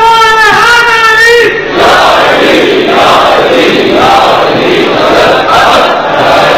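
A man chants loudly and mournfully through a microphone.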